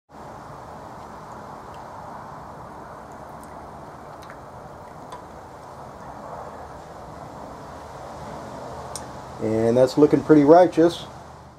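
Liquid sloshes softly in a metal pot.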